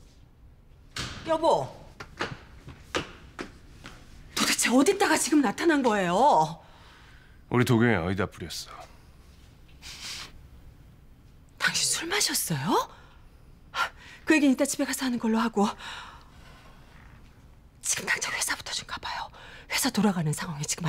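A middle-aged woman speaks sharply and with emotion, close by.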